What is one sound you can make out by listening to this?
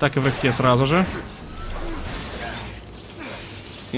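Electricity crackles and zaps in sharp bursts.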